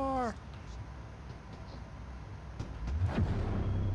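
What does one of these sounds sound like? A heavy sliding door hisses shut.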